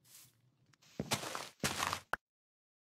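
Dirt crumbles and scrapes as it is dug away.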